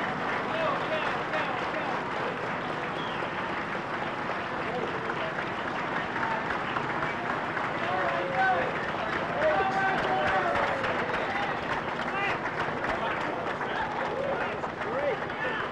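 A crowd of men and women cheers and calls out nearby outdoors.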